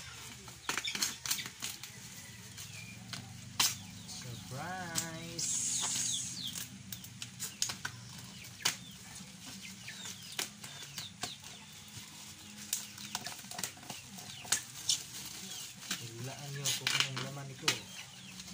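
Plastic wrapping rustles and crackles under a man's hands.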